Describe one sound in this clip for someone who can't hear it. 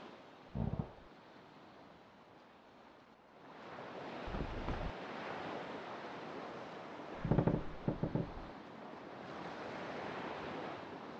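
Ocean waves wash and splash steadily around a small raft.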